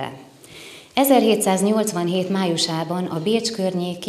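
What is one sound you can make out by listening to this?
A woman speaks calmly into a microphone, reading out.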